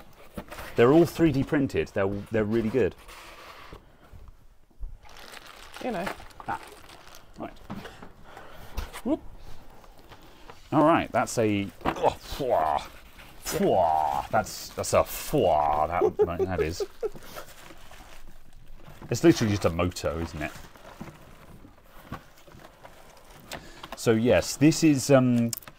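Cardboard packaging rustles and scrapes as a box is unpacked.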